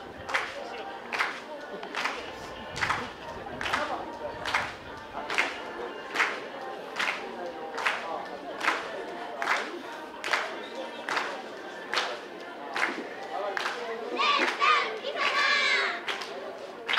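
A group of young women chant in unison.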